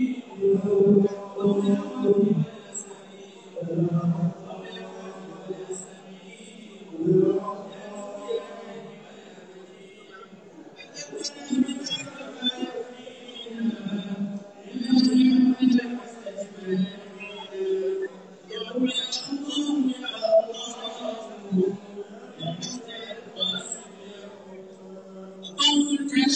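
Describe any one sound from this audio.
A crowd of men talk and murmur in the background.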